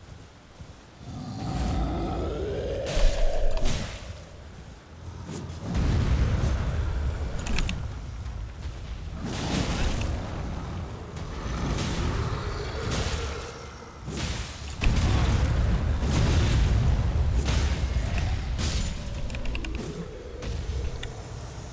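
Heavy thuds and deep rumbling of a fight boom.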